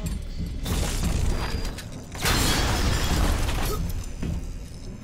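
A heavy weapon fires in loud rushing bursts.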